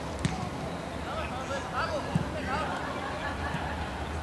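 Young men call out across an outdoor pitch.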